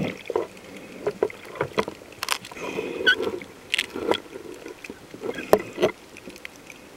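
Water bubbles and knocks close by underwater.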